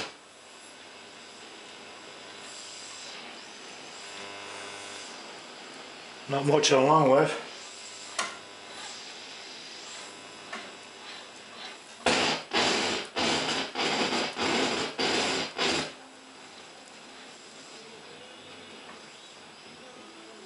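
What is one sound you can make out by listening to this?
An old radio hisses and whistles as its tuning dial turns between stations.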